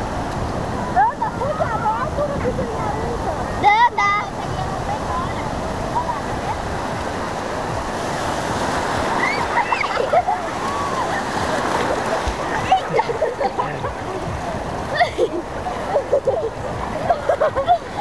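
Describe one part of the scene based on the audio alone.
A young girl shouts and laughs nearby.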